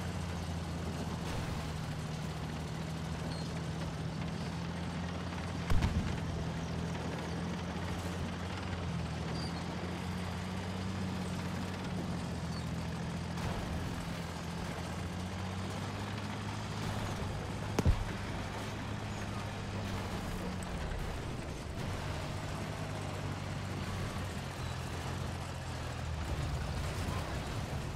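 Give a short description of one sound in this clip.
A tank engine rumbles steadily with low droning.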